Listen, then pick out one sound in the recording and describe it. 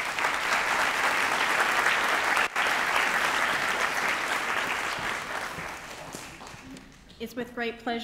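An audience applauds in a large hall, with the applause fading.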